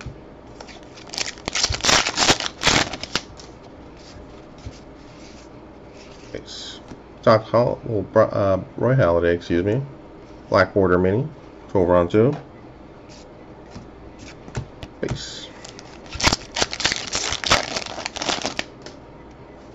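Plastic wrappers crinkle and tear as packs are opened.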